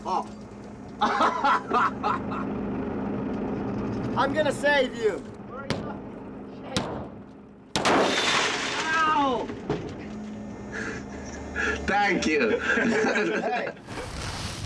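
A man laughs loudly up close.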